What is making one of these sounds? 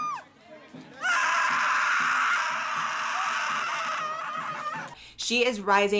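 A man screams loudly.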